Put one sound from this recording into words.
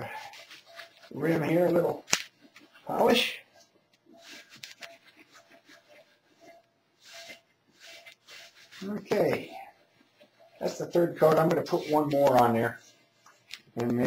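A cloth rubs and wipes against a rough pot.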